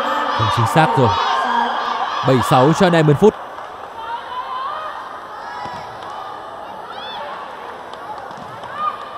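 A crowd cheers and chatters in a large echoing hall.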